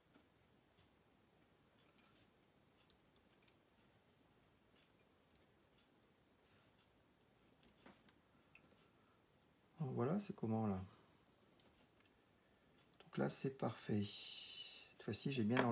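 A small metal tool scrapes and clicks against a thin metal edge.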